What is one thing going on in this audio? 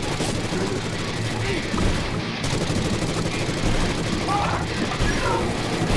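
A shotgun fires again and again.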